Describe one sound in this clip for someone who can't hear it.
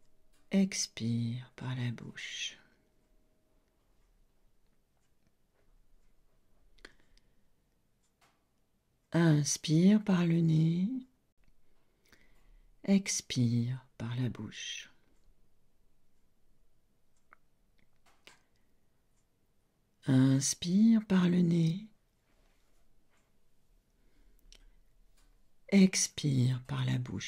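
An older woman speaks calmly and close into a microphone, in short phrases with pauses.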